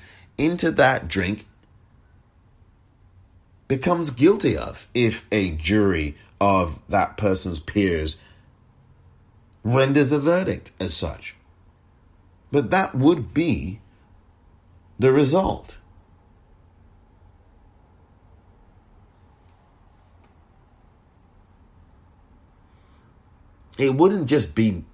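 A man speaks in short bursts with pauses, close to a microphone.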